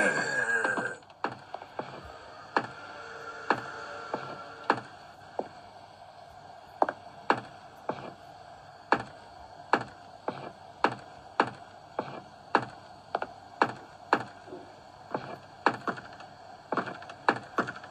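Footsteps thud at an even pace on a wooden floor.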